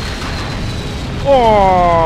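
Electric sparks crackle and fizz.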